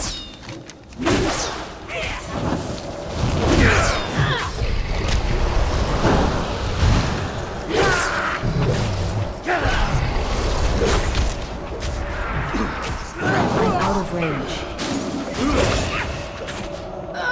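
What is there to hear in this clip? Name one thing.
Weapons clash and spells burst in a noisy fight.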